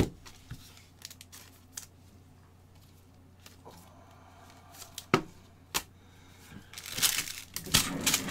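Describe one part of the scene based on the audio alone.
Gloved hands handle crinkling plastic card packs with sharp taps.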